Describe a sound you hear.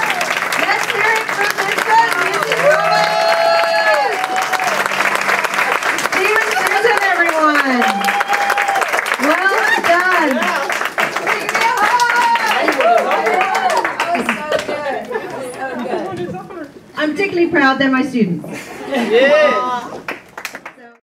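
An audience of adults cheers and whoops loudly.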